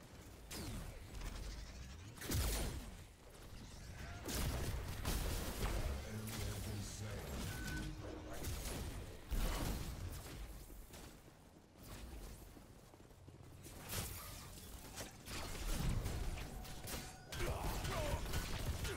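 Blasts and energy bursts go off again and again in a game's battle.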